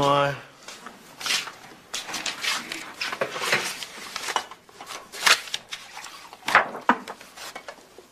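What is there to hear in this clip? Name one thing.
Papers rustle as a man leafs through a folder.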